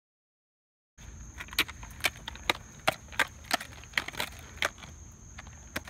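Skateboard wheels roll and clack over cracks in the pavement.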